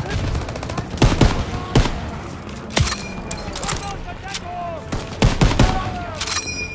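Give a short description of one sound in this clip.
Rifle shots ring out loudly, one at a time.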